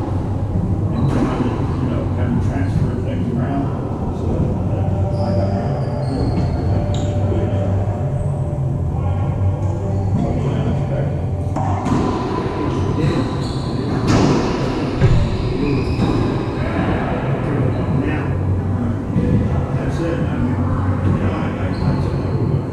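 Rubber shoes squeak on a wooden floor.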